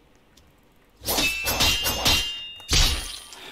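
Sword slashes swish and crackle with fire.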